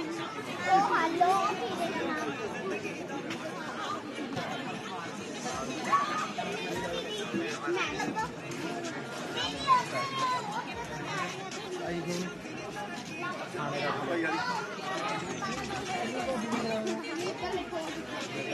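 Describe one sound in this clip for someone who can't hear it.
A crowd of men and women chatter and laugh nearby.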